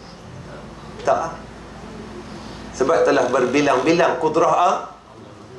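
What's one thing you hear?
A man lectures calmly through a clip-on microphone.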